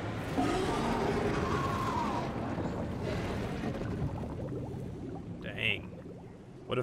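Thick liquid splashes and sloshes.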